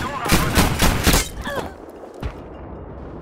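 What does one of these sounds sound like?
An explosion booms and rumbles nearby.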